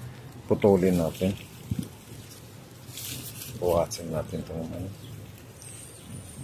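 Leaves rustle as a hand brushes through a leafy plant.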